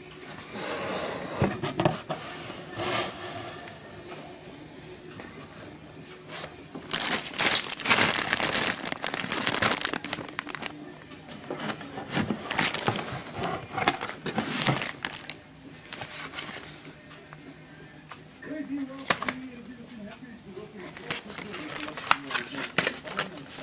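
Plastic wrapping crinkles and rustles up close.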